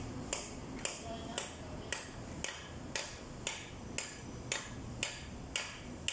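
Metal pliers clink and scrape against a steel brake shoe.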